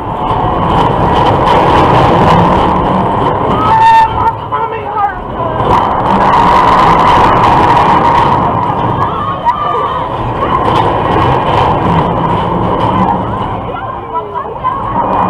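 A ride car rumbles and rattles along a track.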